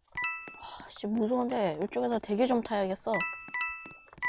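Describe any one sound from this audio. A boy speaks with animation, close to a microphone.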